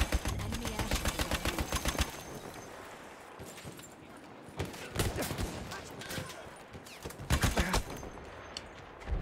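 Rapid gunshots crack and boom.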